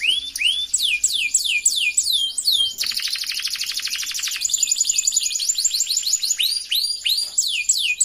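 A small bird chirps rapidly with high, sweeping whistles and a fast trill, close by.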